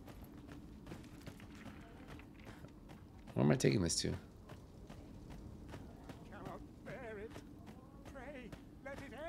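Footsteps crunch steadily on gravel.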